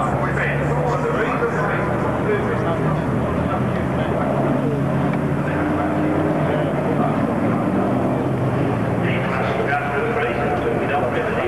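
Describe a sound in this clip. Diesel racing trucks roar around a circuit in the distance.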